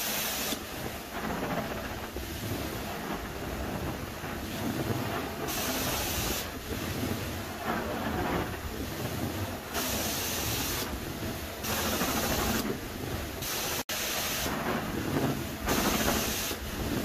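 A carpet cleaning wand hisses in bursts as it sprays and sucks water.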